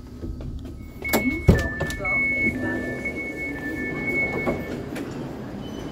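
A train door warning beeps steadily.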